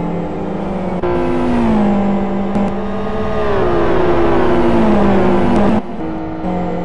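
Racing cars whoosh past close by.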